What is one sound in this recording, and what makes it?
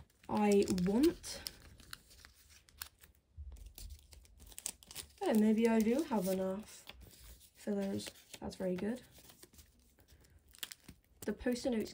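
Cards slide in and out of plastic sleeves with a soft rustle.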